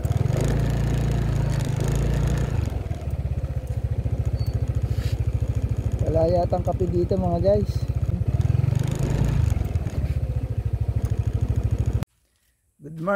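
A motorbike engine drones steadily, then cuts off.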